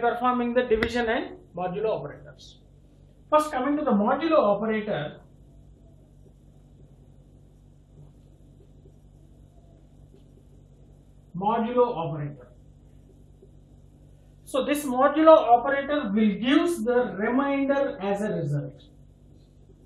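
A man speaks calmly and clearly close by.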